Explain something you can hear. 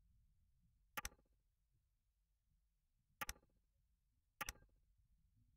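Short sharp clicks sound as pieces snap into place.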